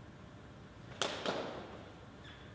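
A foot stamps loudly on a wooden floor in an echoing hall.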